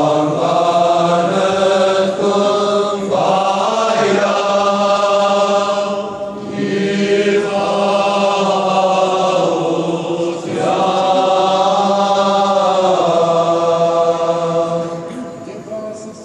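A choir of young men chants loudly in a large echoing hall.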